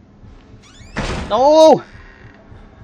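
A stall door creaks as it swings open.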